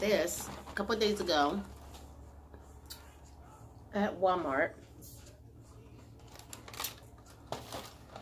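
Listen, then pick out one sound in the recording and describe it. A cardboard box rustles and crinkles in hands.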